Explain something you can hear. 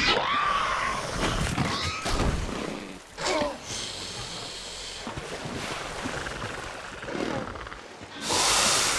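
Water splashes and sloshes as large animals swim.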